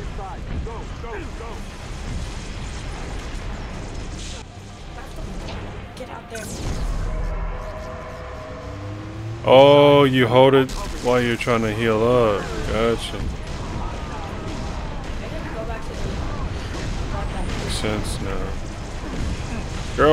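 Rapid gunfire rattles and zaps.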